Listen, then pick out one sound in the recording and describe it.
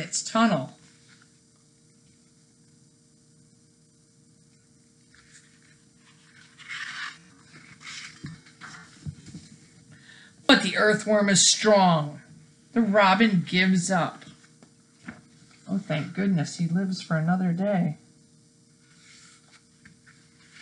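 Pages of a book rustle as they turn.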